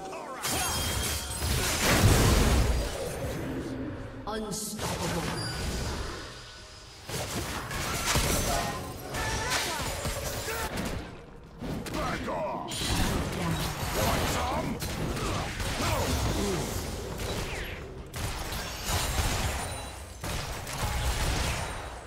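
Magic spells crackle and blast in a fast video game fight.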